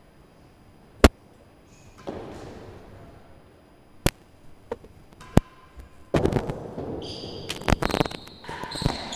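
A ball smacks off a racket and hard walls with sharp cracks in an echoing hall.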